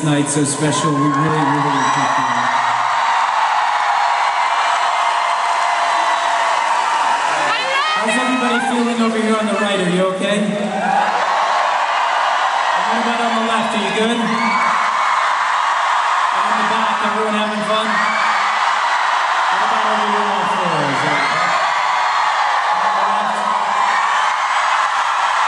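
A large crowd cheers and sings along in a big echoing hall.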